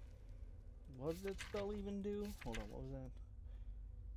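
A young man speaks through a headset microphone.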